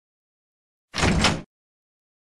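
Heavy double doors swing open with a short burst.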